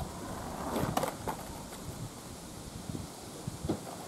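A skateboard tail clacks on the pavement.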